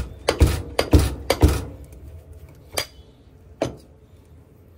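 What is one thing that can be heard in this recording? A press thumps down on raw meat patties.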